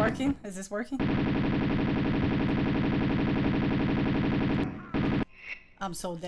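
Pistol shots fire rapidly in a steady stream.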